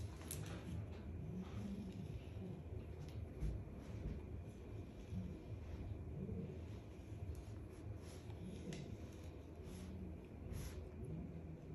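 A flat iron glides along hair with a soft swish.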